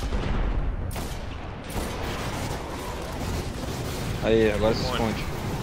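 Gunshots fire in rapid bursts over a low rumble.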